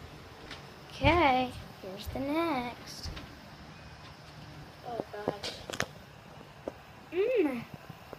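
A young girl speaks and squeals close by.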